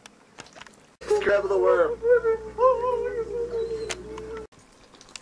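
A dog whines softly close by.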